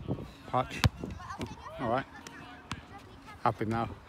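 A football thumps against a foot as it is kicked up.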